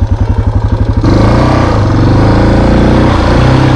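Water splashes as a motorbike rides through a muddy puddle.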